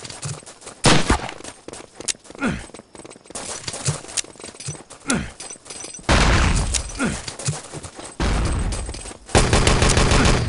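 Gunshots crack nearby in quick bursts.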